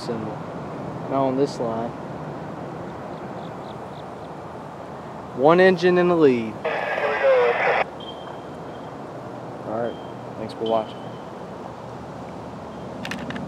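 Wind blows steadily through trees outdoors.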